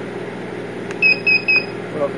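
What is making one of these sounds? An electronic control panel gives three short, high beeps.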